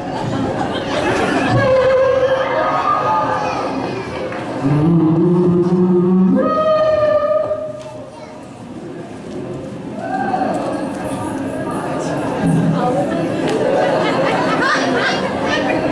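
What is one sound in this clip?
A group of young men sing together in a large hall.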